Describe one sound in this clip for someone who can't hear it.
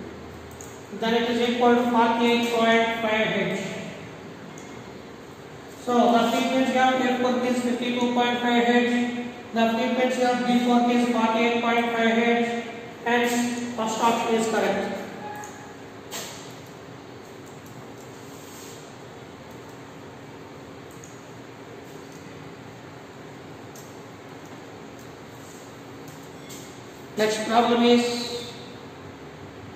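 A man explains calmly and clearly, close by, as if teaching.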